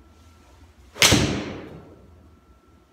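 A golf club strikes a ball with a sharp crack that echoes briefly.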